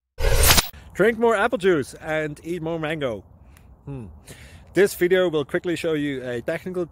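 A man talks with animation close to a phone microphone, outdoors.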